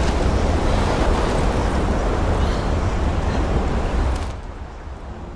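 Heavy rain pours down outdoors.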